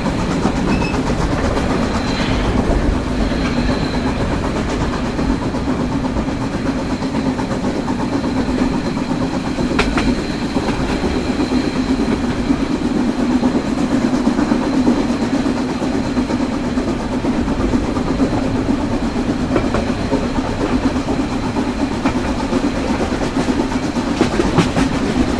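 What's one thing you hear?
A steam locomotive idles with a steady low rumble and hiss of escaping steam.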